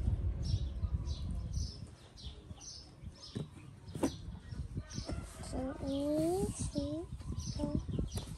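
A monkey's fingers rustle through a person's hair.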